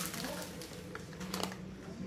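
A child's hand handles crinkly plastic packaging.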